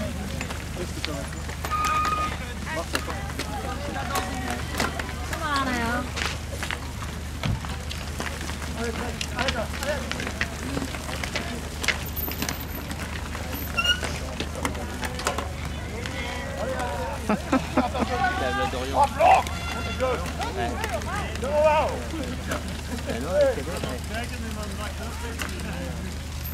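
Bicycle chains and gears click and rattle.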